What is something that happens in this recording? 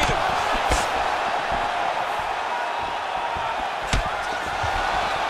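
An arena crowd murmurs and cheers steadily.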